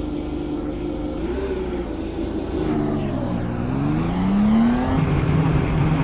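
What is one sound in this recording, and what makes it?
A race car engine revs up and drops back.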